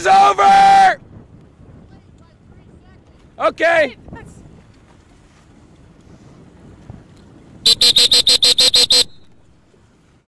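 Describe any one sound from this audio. Water laps gently against small sailing boats.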